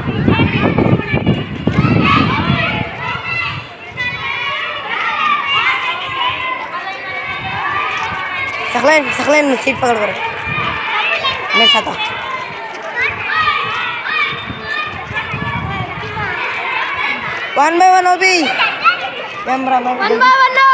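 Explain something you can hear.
Footsteps shuffle on pavement as children walk in a line.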